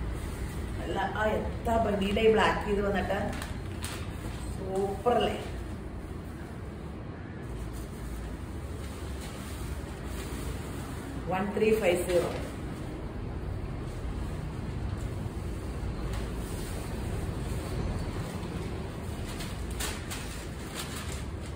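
Fabric rustles as cloth is shaken out.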